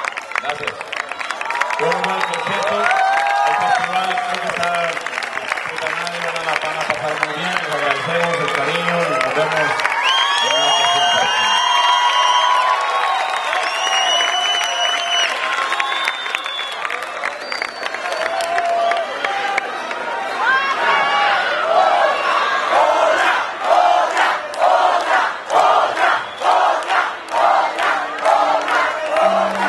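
A man sings through a loudspeaker in a large hall.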